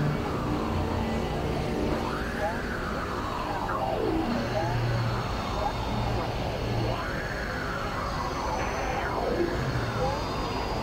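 A keyboard plays a melody.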